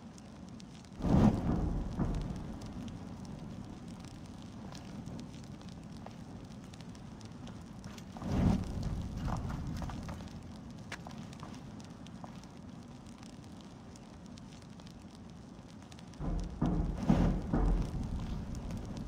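A fire flares up with a loud whoosh.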